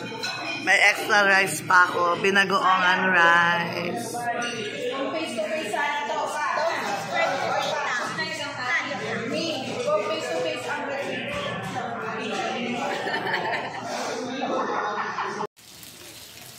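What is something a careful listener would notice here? A group of adults and children chatter nearby.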